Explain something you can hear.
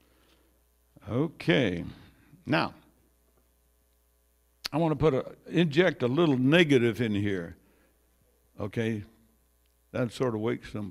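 An elderly man speaks with animation into a microphone, in an echoing room.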